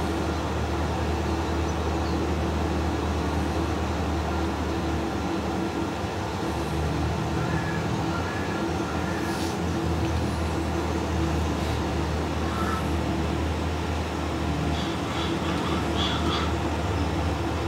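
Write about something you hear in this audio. A tractor engine drones steadily at low revs.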